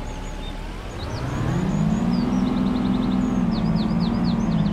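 A bus engine revs up as the bus pulls away.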